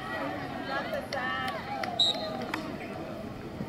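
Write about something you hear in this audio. Lacrosse sticks clack together.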